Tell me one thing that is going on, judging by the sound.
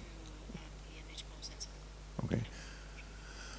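A young woman speaks softly into a microphone.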